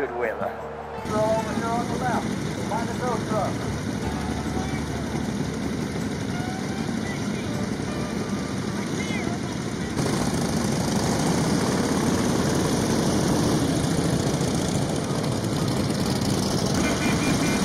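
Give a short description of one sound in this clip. Motorcycle engines rumble and idle nearby.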